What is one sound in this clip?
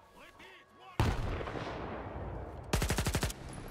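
A large explosion booms nearby and slowly rumbles away.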